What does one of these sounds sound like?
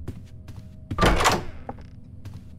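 A wooden door swings open with a loud creak.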